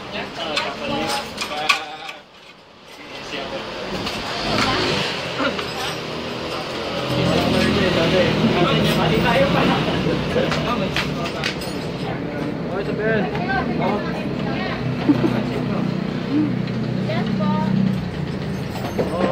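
Metal parts click and clink as a rack is screwed together.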